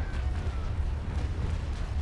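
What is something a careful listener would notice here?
A cannon fires with a loud boom.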